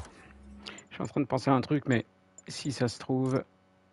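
Menu selections beep with short electronic tones.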